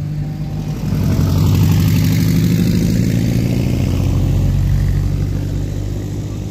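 A second car engine hums as it passes on a dirt road.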